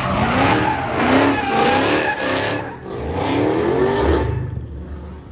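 A car engine roars and revs.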